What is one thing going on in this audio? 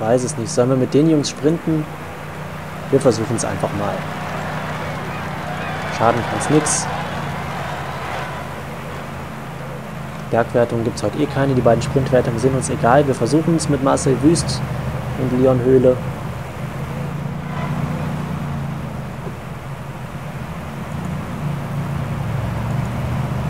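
Bicycles whir along a road.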